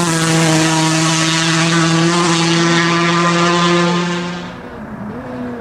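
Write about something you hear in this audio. A rally car engine roars steadily at high revs as the car speeds away.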